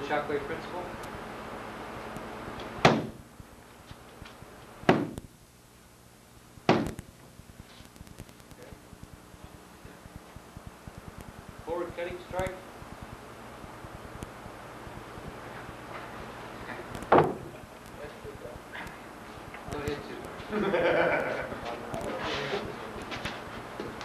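A man speaks calmly nearby in an echoing room.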